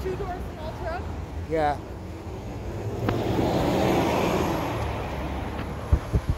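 A city bus drives past close by with a loud engine roar.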